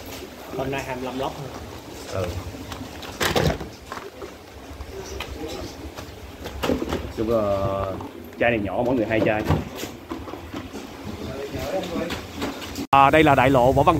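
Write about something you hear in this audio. Cardboard boxes rustle and clatter as they are handled.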